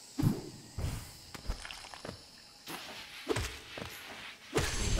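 Sharp slashing hits strike again and again.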